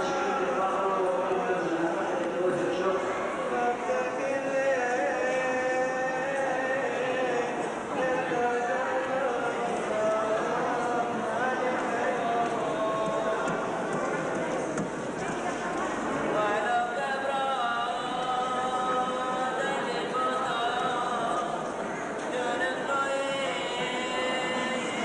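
A man chants in a steady, drawn-out voice.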